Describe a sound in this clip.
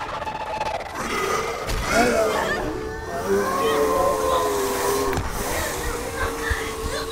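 A creature shrieks and growls loudly.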